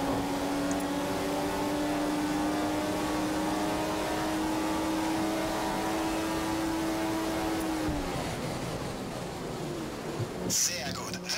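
A racing car engine screams at high revs, then drops sharply under braking.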